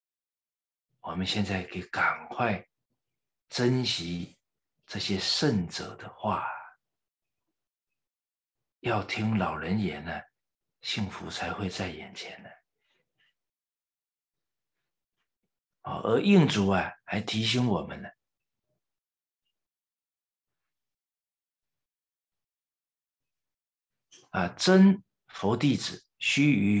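A middle-aged man speaks calmly and clearly into a microphone, in short phrases with pauses.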